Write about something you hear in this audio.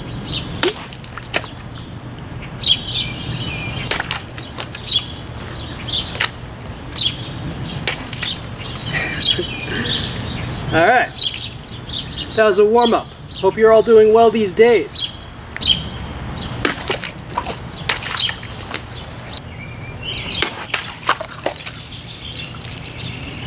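A knife blade chops and strikes against a wooden block.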